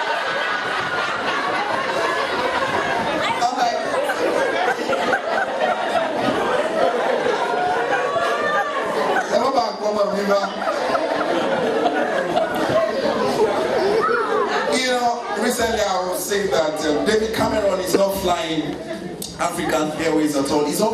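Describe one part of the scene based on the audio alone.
A man speaks with passion through a microphone and loudspeakers in an echoing hall.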